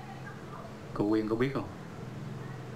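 A man speaks a few words briefly and with emphasis, close by.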